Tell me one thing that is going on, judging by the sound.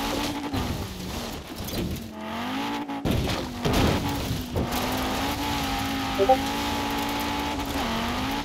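A rally car engine revs loudly at high speed.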